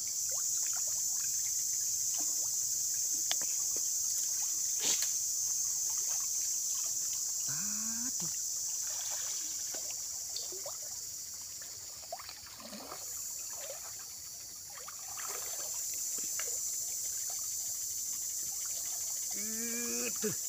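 Water splashes as a man wades and scoops through a shallow stream.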